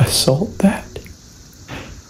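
A young man speaks softly and close by in a hushed voice.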